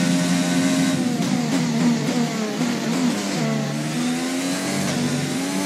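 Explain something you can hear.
A racing car engine drops in pitch as the car brakes for a corner.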